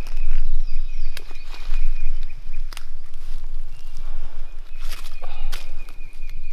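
Branches and brush rustle as a man pushes through undergrowth.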